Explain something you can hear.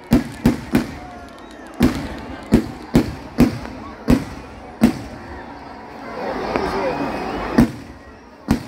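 Fireworks boom loudly in quick bursts outdoors.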